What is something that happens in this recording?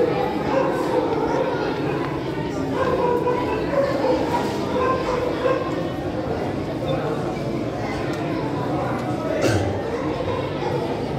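A crowd of men and women murmurs and chatters nearby.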